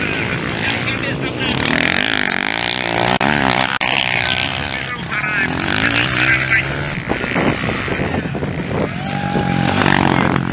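Dirt bike engines roar and rev loudly outdoors.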